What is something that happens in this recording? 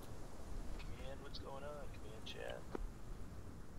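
A man speaks briefly into a microphone, close by.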